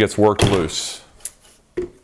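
A small hammer taps on metal.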